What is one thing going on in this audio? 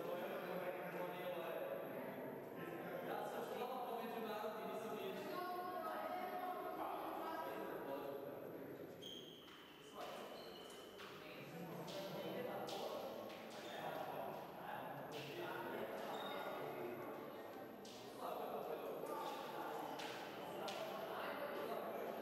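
Several people talk at once in a large echoing hall.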